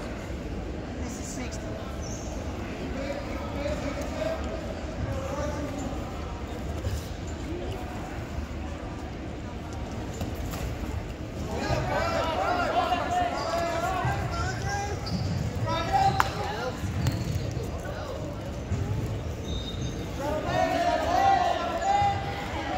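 Wrestlers' shoes squeak on the mat.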